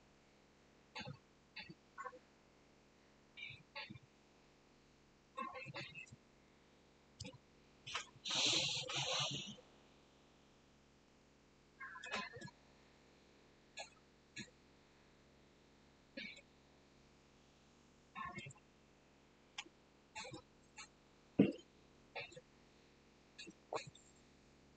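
A man speaks briefly and quietly into a close microphone, now and then.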